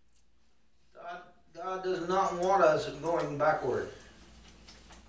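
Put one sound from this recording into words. A middle-aged man speaks with animation in a room with a slight echo.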